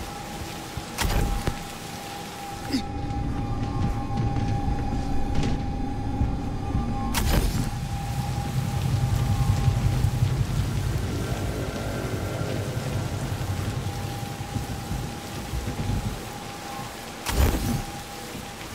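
A heavy landing thuds after a jump.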